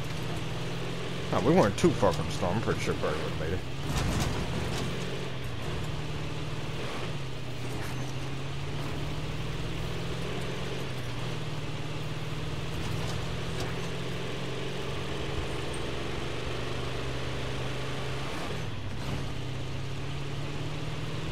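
A truck engine rumbles steadily as the truck drives over rough ground.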